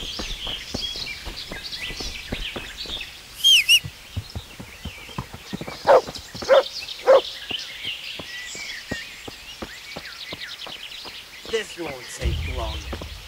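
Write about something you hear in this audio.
Footsteps crunch steadily along a forest path.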